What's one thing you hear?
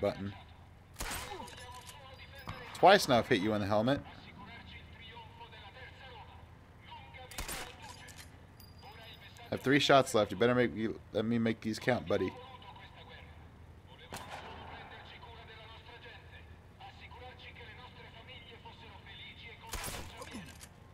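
Rifle shots crack sharply, one at a time.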